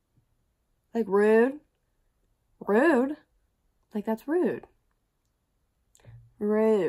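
A young woman talks with animation close to a microphone, in short bursts with pauses.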